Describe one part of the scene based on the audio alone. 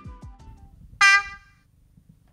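A low diesel horn sounds briefly.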